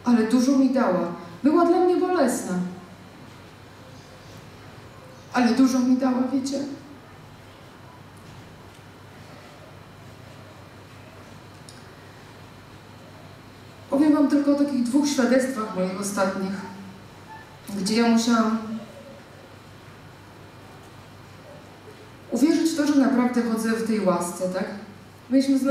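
A woman speaks into a microphone in bursts, heard through loudspeakers in a large room.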